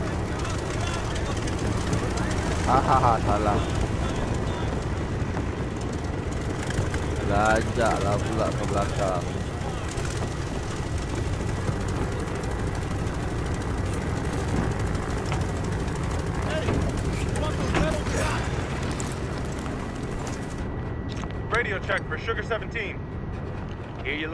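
Propeller plane engines drone and roar steadily.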